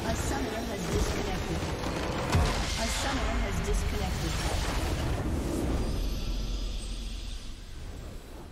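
A huge structure explodes and crumbles with a loud, booming rumble.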